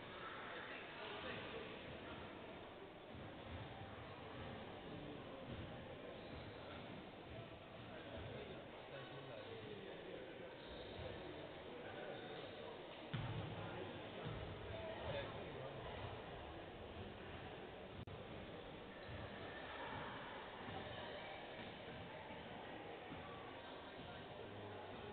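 Several men chat quietly in a large echoing hall.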